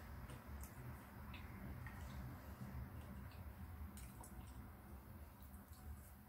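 A man chews food close up with soft, moist crunching.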